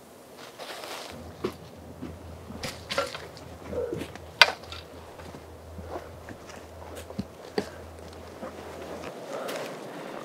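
Footsteps crunch through dry leaves and twigs.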